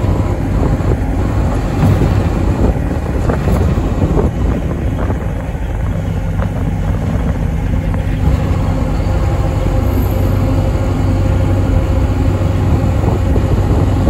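Wind gusts roughly over the hillside outdoors.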